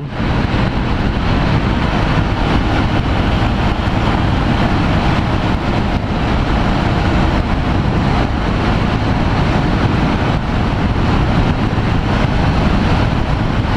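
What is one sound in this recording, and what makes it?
A motorcycle engine drones steadily at speed.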